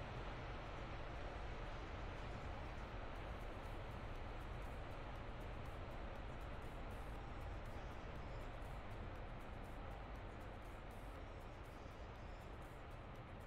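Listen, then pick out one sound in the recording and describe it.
A propeller aircraft engine roars steadily.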